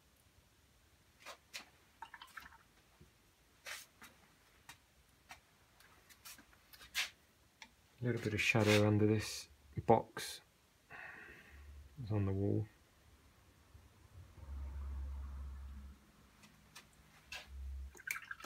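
A paintbrush dabs and strokes softly on paper.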